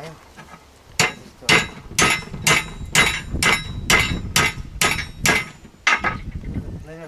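A hammer strikes metal in quick, ringing blows.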